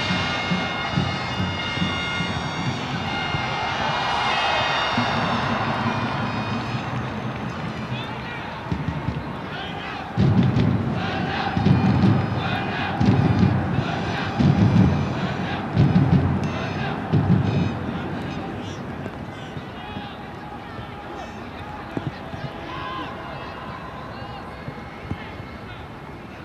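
A crowd murmurs and cheers in a large open stadium.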